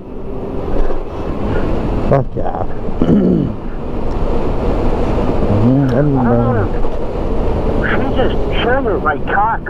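A motorcycle engine revs up and down as it rides.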